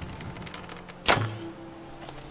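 A bowstring twangs as an arrow is loosed.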